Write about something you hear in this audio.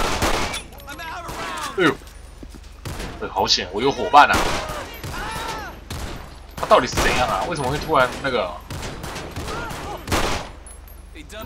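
Pistol shots ring out, sharp and loud, several times.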